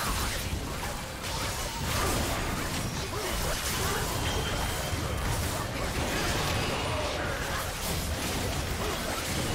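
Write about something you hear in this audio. Game spell effects and weapon impacts clash in a battle.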